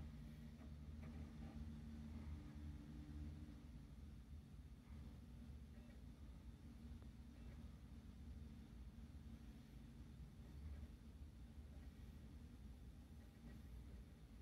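A computer fan hums steadily close by.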